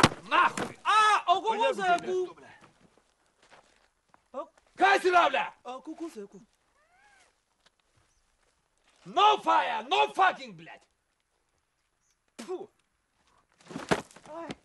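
A man speaks loudly with animation nearby.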